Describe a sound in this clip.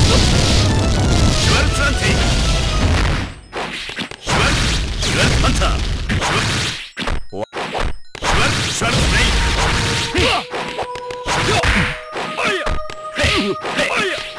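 Punches and kicks land with sharp smacks in rapid bursts.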